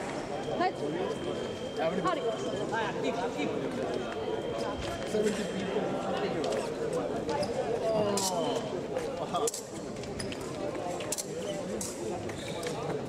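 Fencers' shoes tap and squeak on a hard floor.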